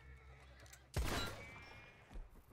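A gunshot cracks loudly and rings out.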